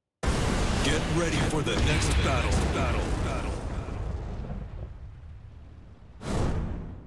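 Fire roars in a loud whoosh and slowly dies away.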